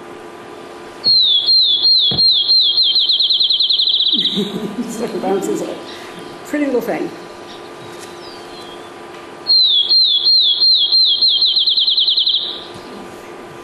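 A small songbird sings clear whistled notes that speed up into a trill, heard through a loudspeaker.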